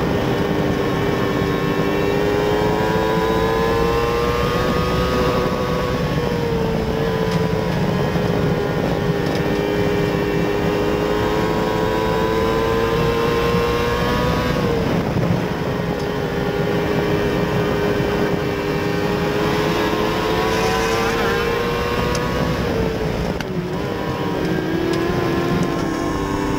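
Tyres rumble over a dirt track.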